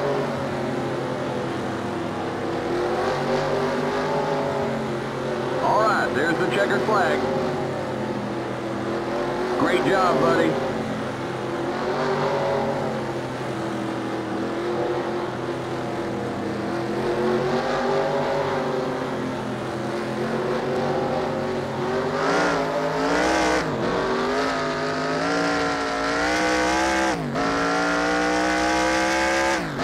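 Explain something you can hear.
A race car engine roars steadily, its pitch rising as it speeds up and falling as it slows.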